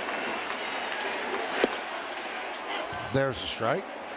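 A ball smacks into a catcher's mitt.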